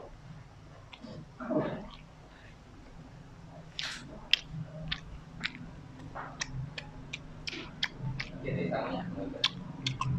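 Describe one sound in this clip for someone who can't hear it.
A young man sucks and slurps his fingers.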